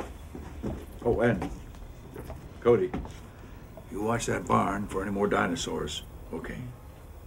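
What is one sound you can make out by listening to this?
A man speaks sternly nearby.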